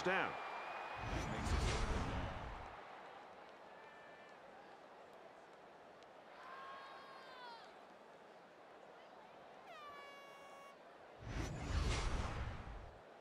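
A loud whoosh sweeps past.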